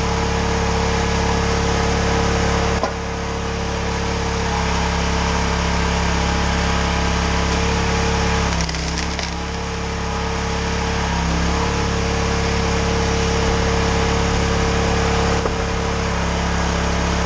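An engine-driven log splitter drones steadily close by.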